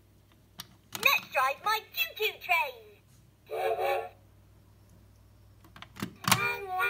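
A toy train plays a cheerful recorded voice and tune.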